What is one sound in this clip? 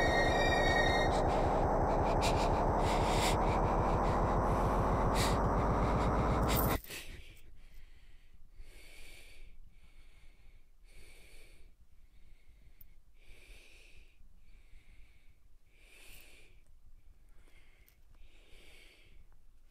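A metal chain clinks and rattles close by.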